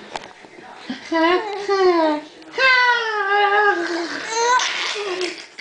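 A woman coos and talks playfully to a baby up close.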